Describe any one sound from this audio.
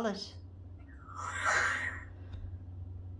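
A parrot makes a breathy hissing noise.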